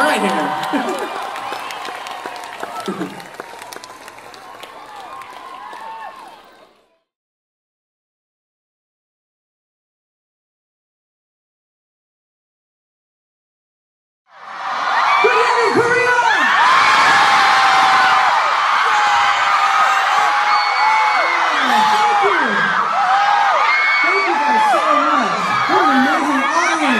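A man sings into a microphone over a loudspeaker at a live concert.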